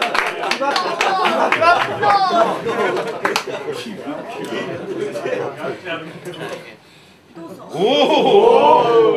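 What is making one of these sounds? Audience members shout and cheer.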